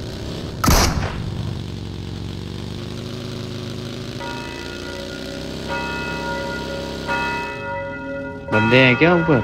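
A buggy engine drones steadily and rises and falls in pitch.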